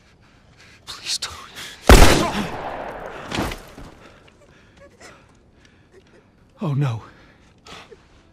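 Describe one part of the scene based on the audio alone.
A man pleads desperately.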